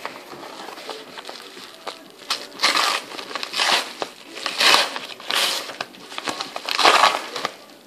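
A plastic package crinkles and rustles as hands open it.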